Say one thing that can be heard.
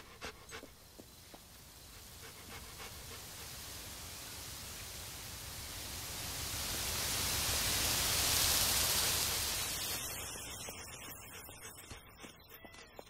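A waterfall rushes nearby, growing louder and then fading.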